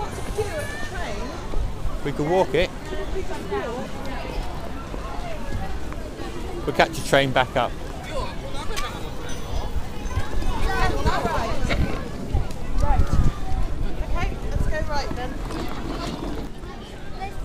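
A young boy talks excitedly nearby.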